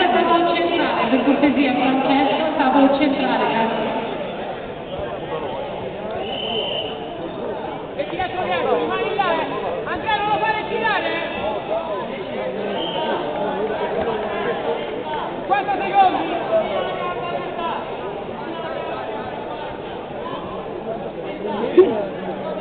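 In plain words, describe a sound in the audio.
Spectators shout and call out encouragement in an indoor hall.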